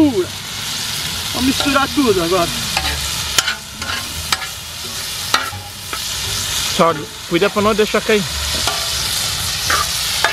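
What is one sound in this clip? A metal spatula scrapes and clinks against the pan.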